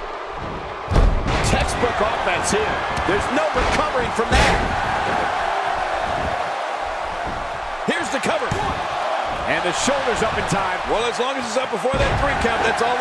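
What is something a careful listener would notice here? Heavy bodies slam onto a wrestling mat with loud thuds.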